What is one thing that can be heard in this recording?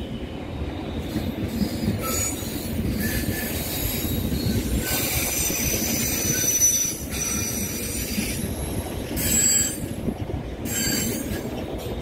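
Train wheels squeal and clatter over the rails.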